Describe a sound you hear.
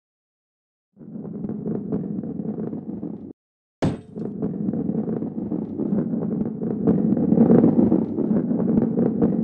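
A heavy ball rolls along a wooden track with a low, steady rumble.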